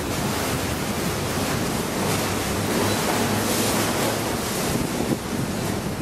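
A boat engine chugs steadily nearby.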